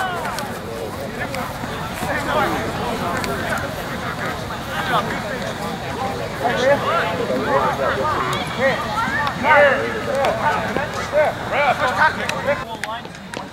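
Young women shout and cheer outdoors.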